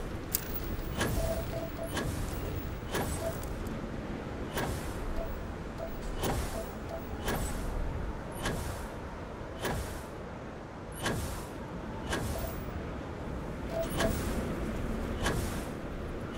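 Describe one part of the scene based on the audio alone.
A jetpack hisses and roars in short bursts.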